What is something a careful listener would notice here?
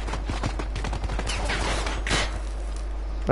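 A gun fires a burst.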